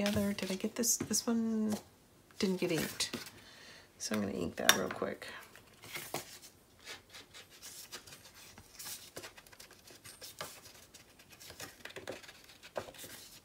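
Paper cards rustle and scrape softly as they are handled.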